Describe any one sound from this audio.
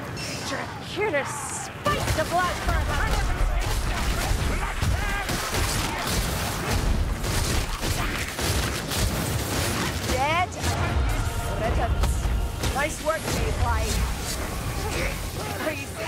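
Blades slash and clash against creatures in a loud, chaotic melee.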